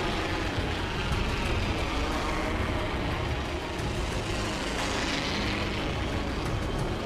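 Wind rushes loudly and steadily past during a fast fall through the air.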